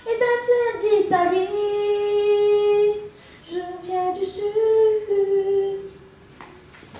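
A young girl sings through a microphone.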